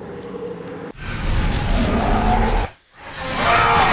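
A creature shrieks loudly as it is torn apart.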